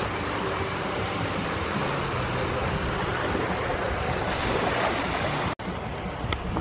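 Feet splash slowly through shallow water.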